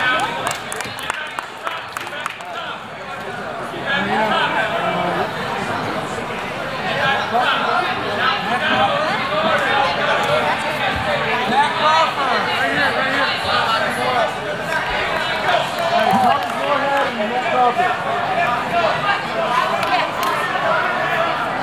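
A large crowd chatters and cheers in an echoing hall.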